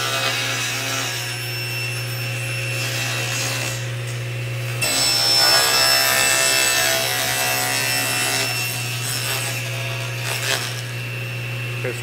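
A table saw motor hums steadily.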